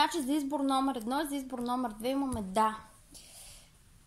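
A card is laid down softly on a cushion.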